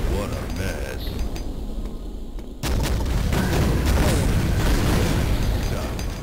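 Heavy guns fire in bursts.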